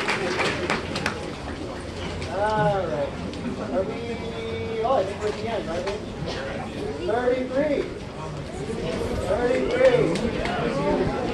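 A crowd of adults and children chatters nearby.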